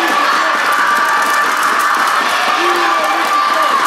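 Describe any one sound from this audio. A basketball bounces on the floor as a player dribbles.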